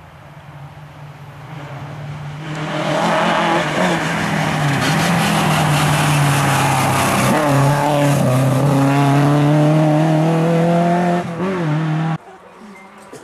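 A rally car engine approaches, revs hard and roars past close by, then fades away.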